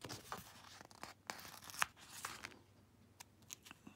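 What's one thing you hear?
A sticker peels off a backing sheet.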